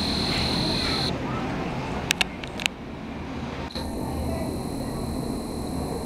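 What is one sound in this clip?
A bus engine rumbles as the bus pulls away.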